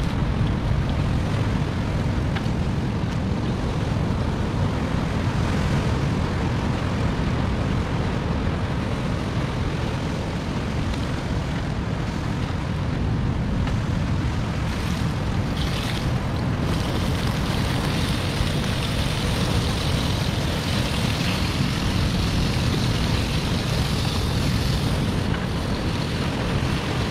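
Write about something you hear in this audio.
Wind blows hard into the microphone with a low rumble.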